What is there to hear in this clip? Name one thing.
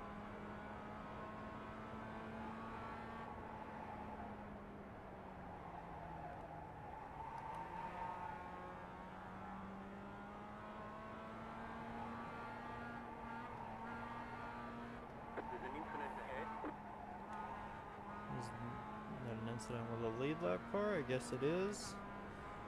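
A racing car engine drones steadily, rising and falling in pitch with gear changes.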